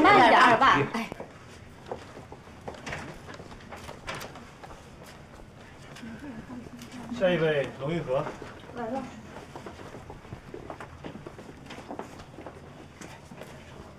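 Footsteps tap on a hard floor in a quiet corridor.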